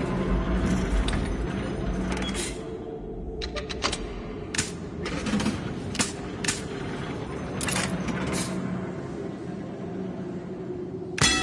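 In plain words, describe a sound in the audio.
A cart rumbles steadily along rails.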